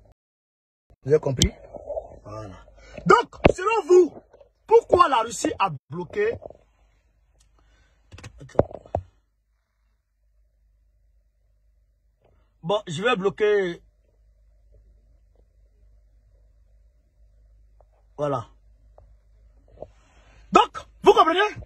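A young man speaks close to a phone's microphone, talking with animation in bursts with pauses.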